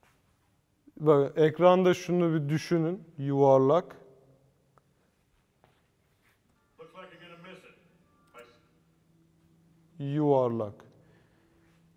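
A man speaks with animation close by, in short bursts.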